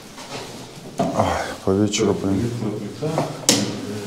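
A man speaks nearby in an echoing empty room.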